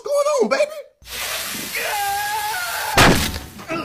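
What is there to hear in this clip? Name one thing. A woman shrieks loudly.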